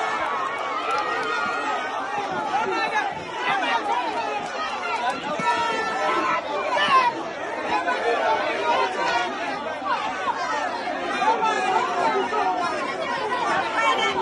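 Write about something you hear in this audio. A crowd of men and women cheers and shouts loudly outdoors.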